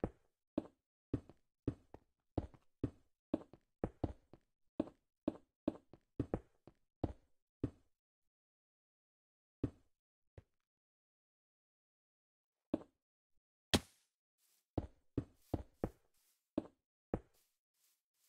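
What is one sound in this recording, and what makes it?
Stone blocks thud one after another as they are set down.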